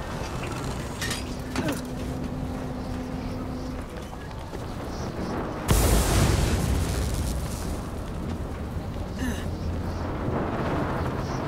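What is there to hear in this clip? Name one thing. Strong wind roars and gusts high up outdoors.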